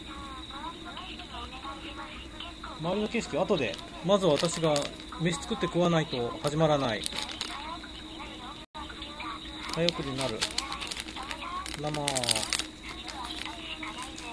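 A plastic packet crinkles in hands.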